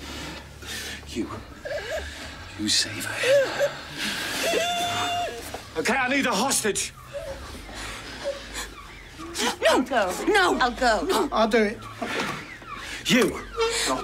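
An older man speaks angrily and forcefully.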